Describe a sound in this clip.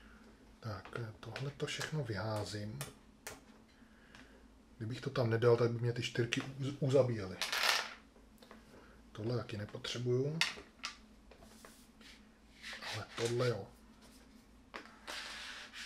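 Cards slide across a table.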